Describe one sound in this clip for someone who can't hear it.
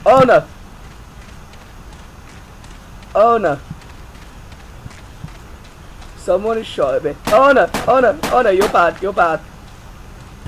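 A young man speaks calmly into a headset microphone, in short bursts.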